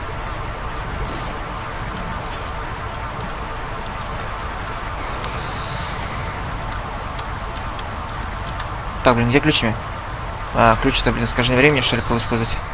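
A strong wind roars and rumbles steadily.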